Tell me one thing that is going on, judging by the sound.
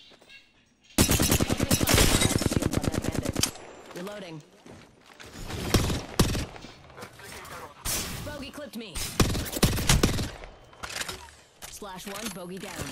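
An automatic rifle fires in rapid bursts, loud and close.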